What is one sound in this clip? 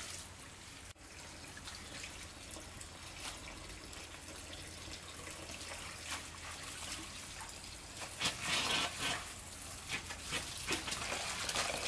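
Water runs from a tap and splashes into a bowl.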